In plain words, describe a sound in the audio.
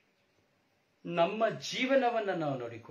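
A middle-aged man speaks close by with animation.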